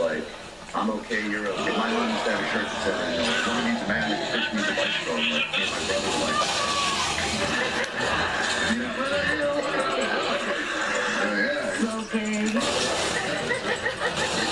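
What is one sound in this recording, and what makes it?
Video game sounds play through a television speaker.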